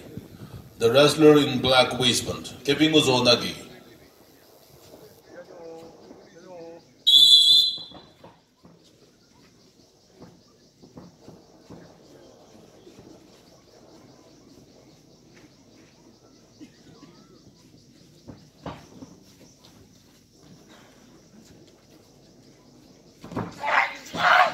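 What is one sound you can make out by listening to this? Bare feet shuffle and thud on a mat.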